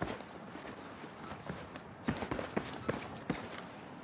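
Footsteps clatter on metal stairs.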